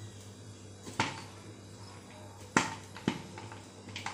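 A metal cup clinks against a steel bowl.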